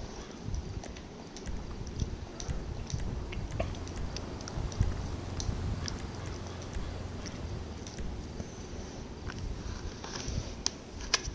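Short, soft menu clicks sound again and again.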